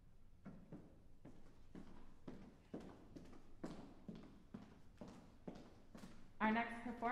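Footsteps cross a wooden stage.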